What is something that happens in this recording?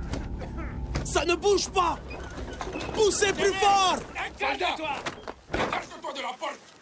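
A man shouts urgently nearby.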